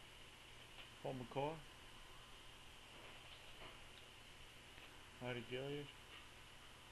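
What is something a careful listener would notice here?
A young man speaks briefly and calmly close to the microphone.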